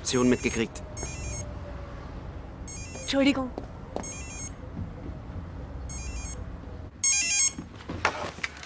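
A telephone rings in short repeated bursts.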